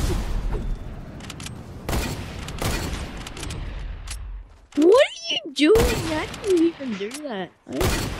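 Rapid gunshots crack and echo.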